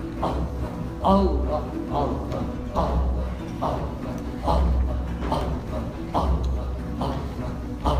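A lute is plucked in a lively melody.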